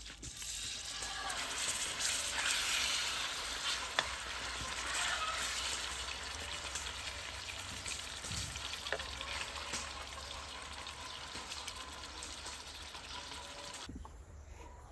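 Chicken sizzles loudly in hot oil.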